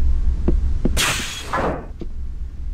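A heavy sliding door hisses open.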